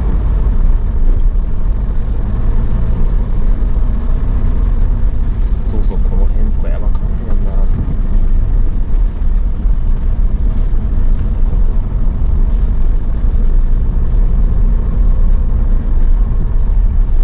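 Tyres crunch and rumble over packed snow.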